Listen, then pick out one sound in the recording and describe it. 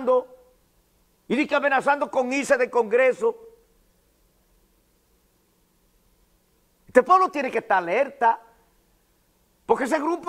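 A middle-aged man speaks calmly into a close microphone, pausing between phrases.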